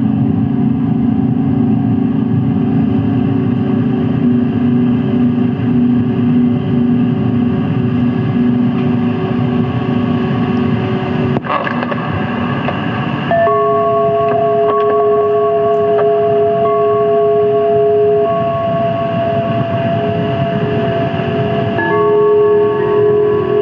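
Electronic synthesizer tones drone steadily and shift in pitch now and then.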